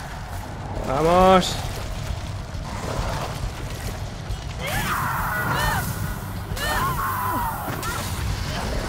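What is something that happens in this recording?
A monstrous creature lets out long, wavering shrieks.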